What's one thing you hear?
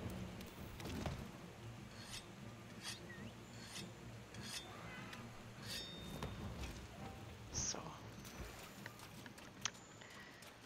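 A metal weapon strikes with a sharp clang.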